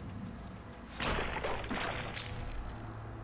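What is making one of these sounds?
A gunshot bursts.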